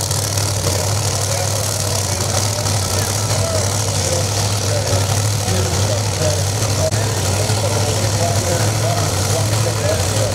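A race car engine idles with a loud, steady, deep rumble.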